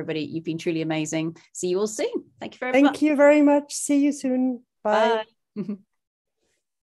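Several men and women say goodbye cheerfully over an online call.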